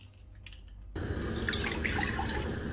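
Water pours into a pan.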